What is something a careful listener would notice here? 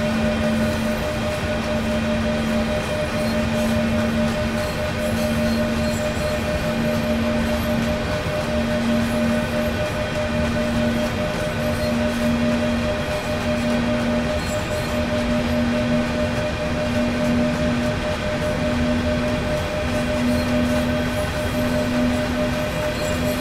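Train wheels rumble and clack rhythmically over rail joints.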